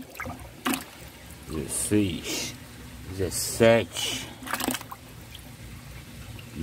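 Water splashes and sloshes in a bucket as a fish is handled.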